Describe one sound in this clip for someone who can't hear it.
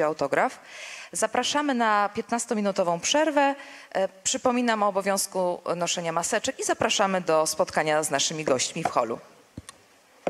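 A woman speaks with animation through a microphone and loudspeakers.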